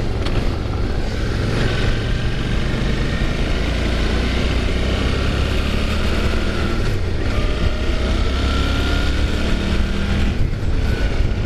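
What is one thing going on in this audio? Wind rushes past loudly throughout.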